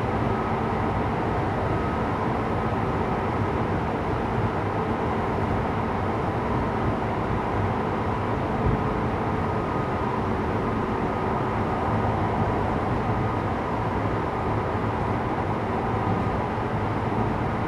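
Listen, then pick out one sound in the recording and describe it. An electric train hums steadily.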